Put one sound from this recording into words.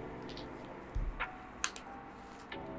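A plastic bag crinkles between fingers.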